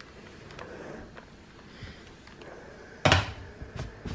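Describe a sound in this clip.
An iron is set down with a knock.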